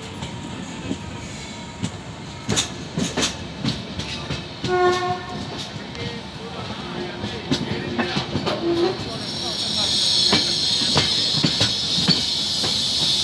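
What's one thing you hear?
Train wheels click and knock over rail joints.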